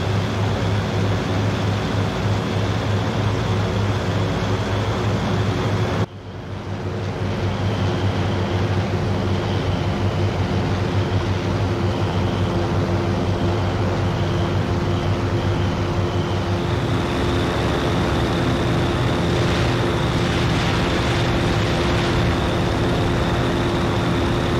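Propeller engines drone loudly and steadily.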